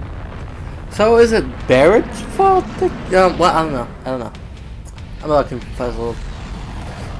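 A man speaks in a deep, strained voice.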